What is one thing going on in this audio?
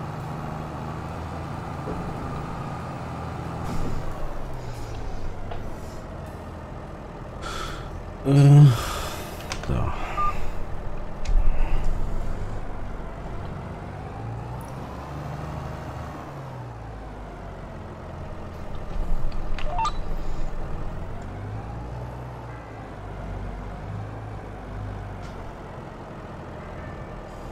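A tractor engine rumbles steadily, its pitch rising and falling as it drives.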